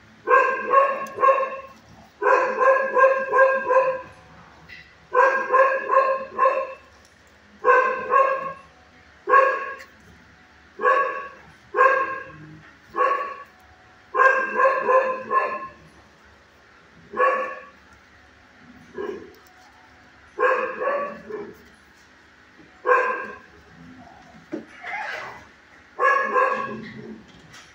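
A dog barks loudly and repeatedly close by.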